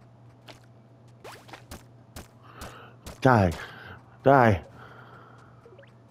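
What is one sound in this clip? A short game chime rings as a fish is caught.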